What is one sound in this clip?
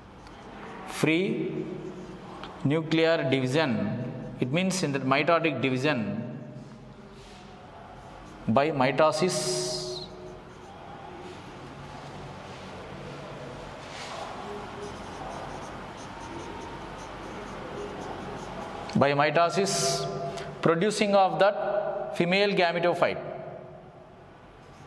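An adult man speaks calmly, as if teaching, close by.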